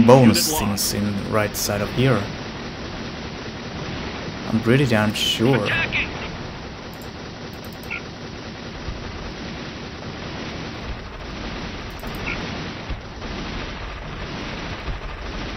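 Rapid gunfire crackles in short bursts.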